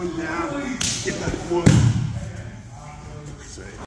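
Bodies thud onto a mat.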